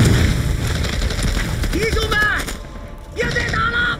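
A man speaks urgently and tearfully.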